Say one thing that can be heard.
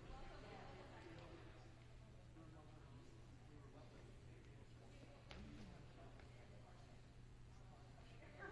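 A group of young people chat casually in a large echoing hall.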